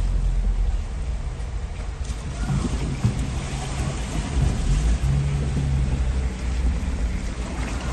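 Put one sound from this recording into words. Cars drive slowly through floodwater with a wet swishing.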